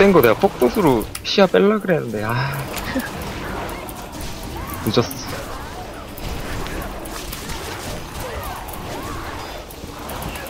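Magic spells whoosh and crackle during a video game battle.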